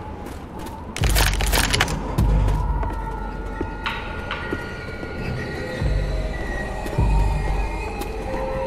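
Footsteps thump on wooden boards.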